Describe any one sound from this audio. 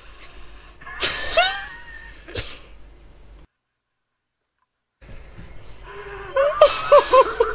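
A man groans and sighs into his hands.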